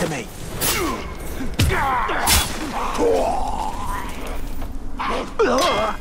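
Blades clash and bodies thud in a close fight.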